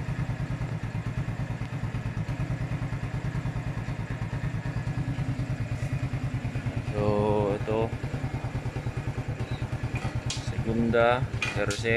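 A motorcycle engine idles with a steady, fast putter.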